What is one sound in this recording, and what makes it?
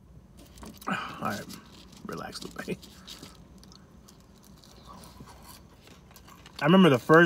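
A man chews food with soft crunching.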